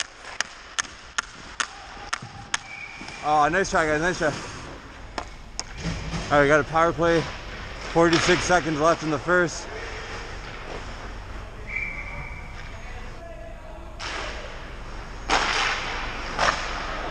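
Ice skates scrape and hiss across the ice in a large echoing rink.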